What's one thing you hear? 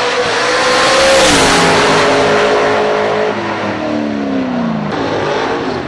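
A race car engine roars loudly as it speeds past, its pitch dropping away.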